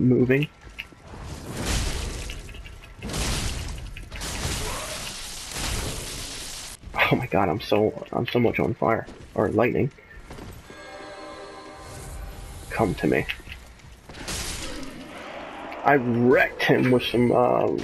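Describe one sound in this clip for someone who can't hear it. Metal blades clash and ring in a sword fight.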